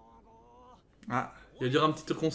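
A young man speaks casually and close into a microphone.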